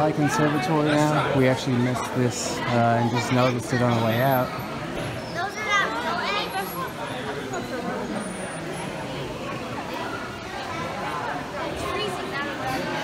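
A crowd murmurs and chatters.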